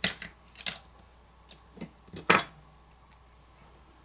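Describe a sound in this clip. A flex cable connector snaps loose with a small click.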